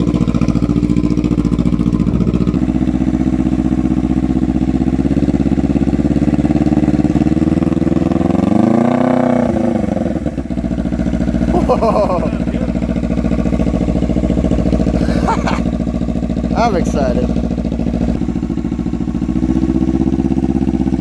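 A motorcycle engine idles with a steady, throbbing rumble.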